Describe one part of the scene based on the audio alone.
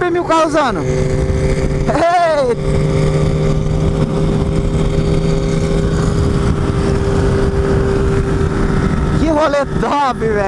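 A motorcycle engine revs hard up close, its pitch rising and falling.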